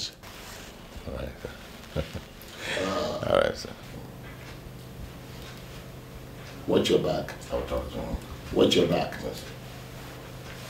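A middle-aged man answers calmly.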